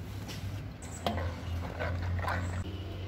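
A spoon stirs flour in a metal pan with soft scraping.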